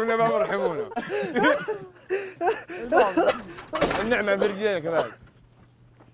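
Young men shout and laugh loudly, with animation, close by.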